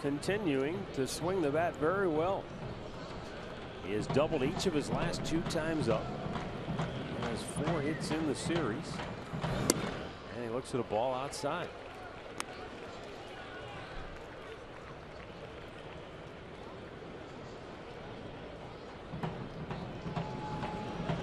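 A crowd murmurs throughout in a large outdoor stadium.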